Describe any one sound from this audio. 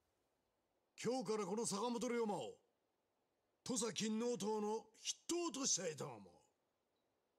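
A man speaks forcefully and dramatically, close by.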